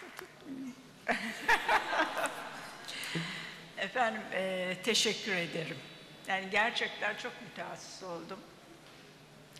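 An elderly woman speaks calmly into a microphone over loudspeakers.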